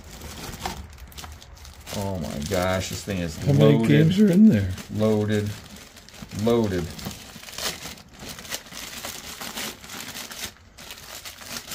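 Plastic wrapping crinkles in a person's hands.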